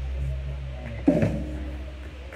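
A drummer strikes a cymbal.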